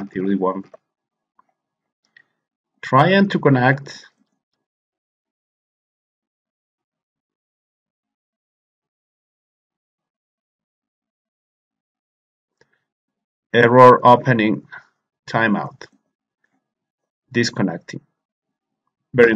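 A man speaks calmly into a close microphone, in short bursts with pauses.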